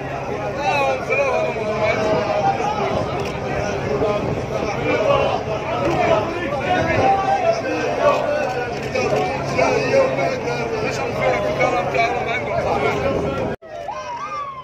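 A crowd of men cheers and chants loudly outdoors.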